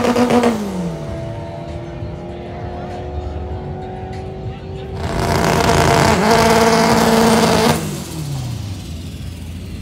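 A race car roars down a drag strip and fades into the distance.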